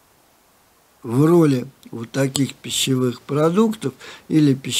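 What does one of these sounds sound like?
An elderly man speaks calmly into a close microphone.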